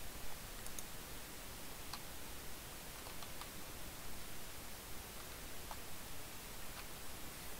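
Short, soft game chimes ring out now and then as items are picked up.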